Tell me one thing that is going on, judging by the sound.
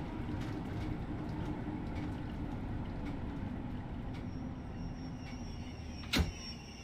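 A train rumbles along the rails through a tunnel with a low steady roar.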